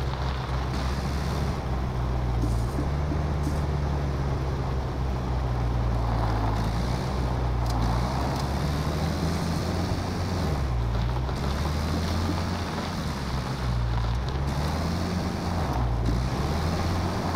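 A car engine rumbles and revs unevenly.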